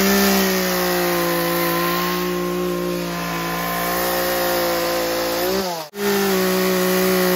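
A chainsaw engine idles steadily close by.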